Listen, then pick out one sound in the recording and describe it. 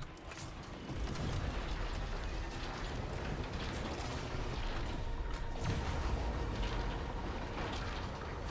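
A spacecraft engine rumbles steadily.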